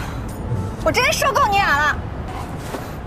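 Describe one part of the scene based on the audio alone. A young woman speaks irritably, close by.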